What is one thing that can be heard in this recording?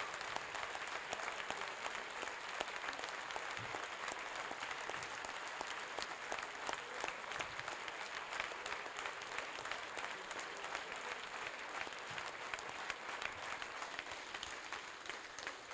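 A large crowd applauds steadily in a big echoing hall.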